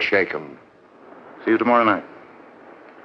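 A man speaks in short, loud bursts nearby.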